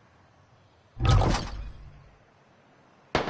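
A rifle shot booms and echoes away.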